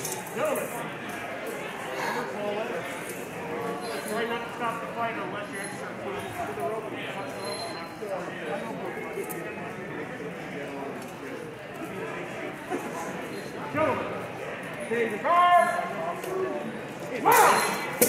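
A man speaks with animation, close by, in a large echoing hall.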